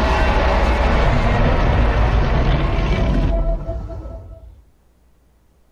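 A huge explosion roars and rumbles, then fades away.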